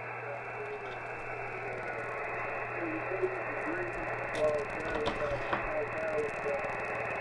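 A shortwave radio hisses with static through a small loudspeaker.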